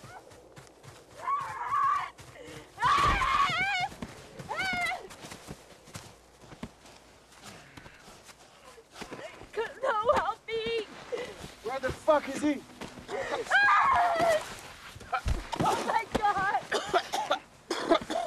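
A young woman gasps and cries out.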